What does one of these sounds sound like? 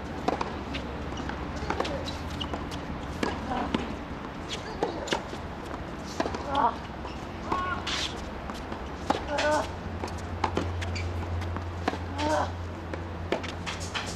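Tennis shoes squeak and scuff on a hard court.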